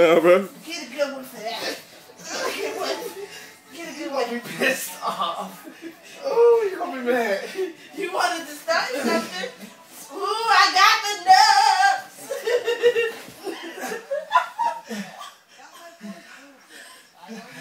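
A young woman shouts and laughs excitedly close by.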